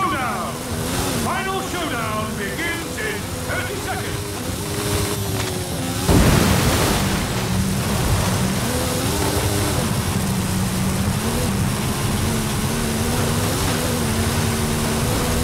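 A powerful car engine roars and changes pitch as it speeds up and slows down.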